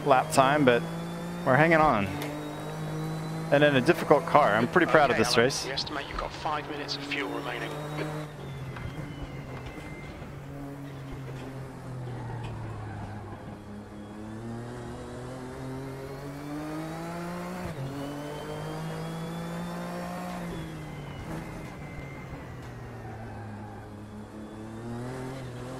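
A racing car engine drones steadily, rising and falling in pitch.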